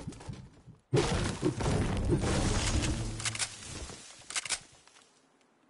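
A pickaxe chops into a tree.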